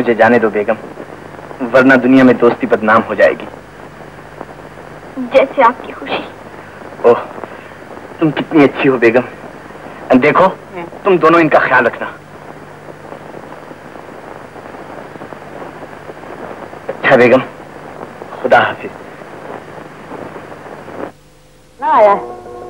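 A man speaks with feeling, close by.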